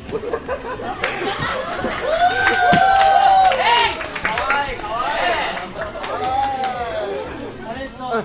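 A crowd of young women screams and cheers loudly.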